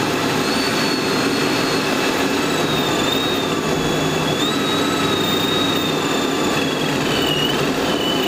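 A supercharger whines high above the engine.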